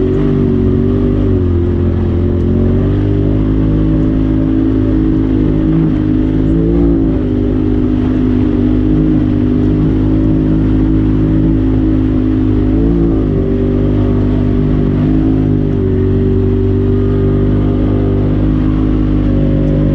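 Tyres crunch over a dirt and gravel track.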